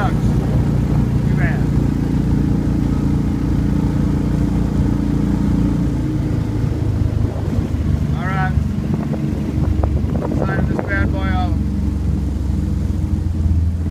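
A boat motor drones steadily.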